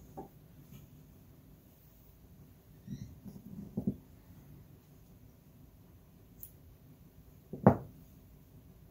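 Wooden loom parts knock and clack.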